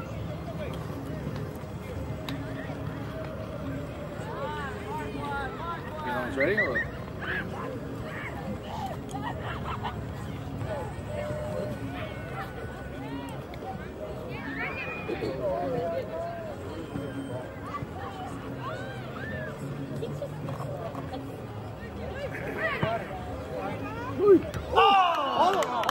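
Children call out to each other across an open field.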